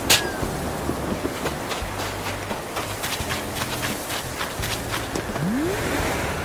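Gentle waves lap at a shore.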